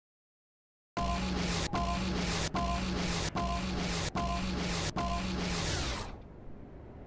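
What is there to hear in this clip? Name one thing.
A keypad beeps in a quick, even series of tones.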